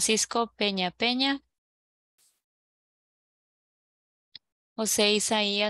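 A woman speaks clearly through an online call, pausing between phrases.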